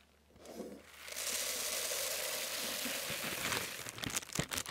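Small beads pour and patter into a container close to a microphone.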